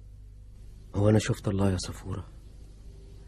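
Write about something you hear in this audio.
A man speaks loudly and urgently, close by.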